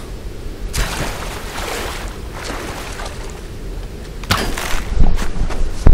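Water splashes and sprays in loud bursts.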